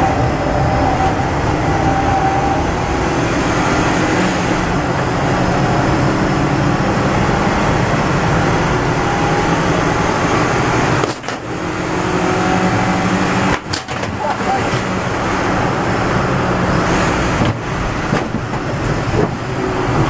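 A car's body rattles and road noise rumbles throughout.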